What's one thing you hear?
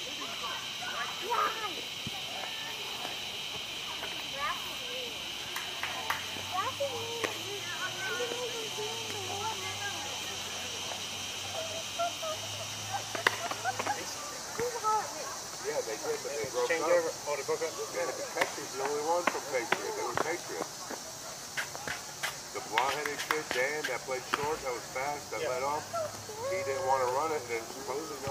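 Men talk and call out across an open outdoor field.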